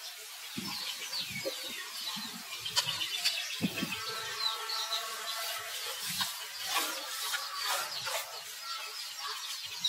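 A newborn monkey squeaks in short, high cries close by.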